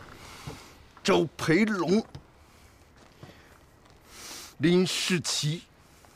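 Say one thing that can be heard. A man speaks forcefully and close by.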